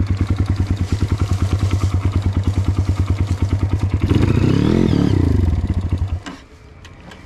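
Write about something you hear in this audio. A motorcycle engine idles close by with a rapid throb, revs briefly and then cuts out.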